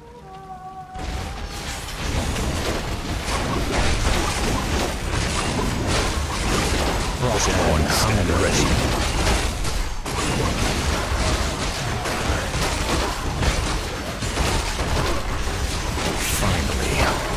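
Fantasy battle sounds clash and crackle with magic blasts.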